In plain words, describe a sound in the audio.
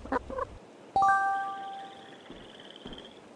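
A bright game chime rings out.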